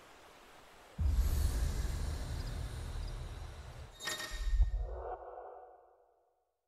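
A deep magical rumble swells and then fades away.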